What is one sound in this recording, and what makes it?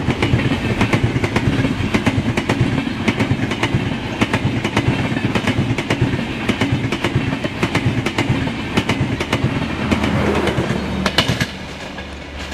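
A train rushes past close by, its wheels clattering rhythmically over the rail joints.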